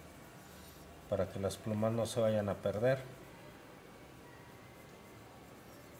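A graphite pencil scratches across paper, shading in short strokes.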